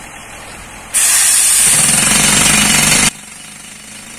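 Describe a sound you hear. A pneumatic rock drill hammers loudly into stone.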